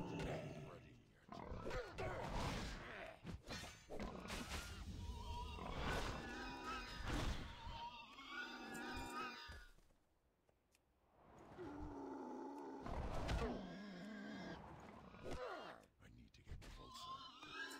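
Blows land with sharp thuds as a character fights.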